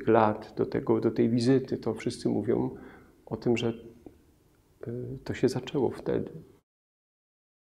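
An older man speaks calmly and closely into a microphone.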